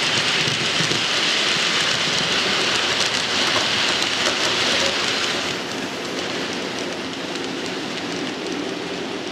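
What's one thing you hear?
A model train rumbles and clatters along the track.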